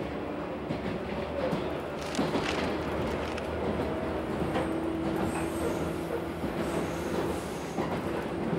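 A man reads out calmly, close by.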